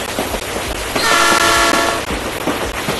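A train horn blows loudly for about a second.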